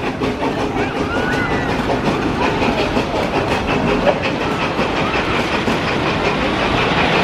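Riders scream in the distance.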